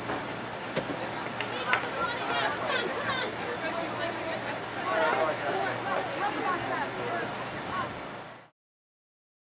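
Young women shout and call to each other outdoors across an open field.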